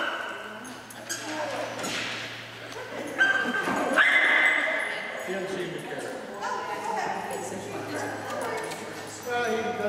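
A woman talks to a dog in a high, encouraging voice in an echoing hall.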